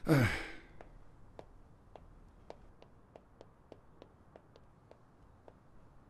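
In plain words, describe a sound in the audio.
Footsteps climb wooden stairs softly.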